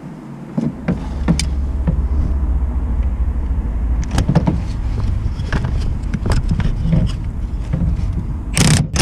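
Metal tools clink against engine parts.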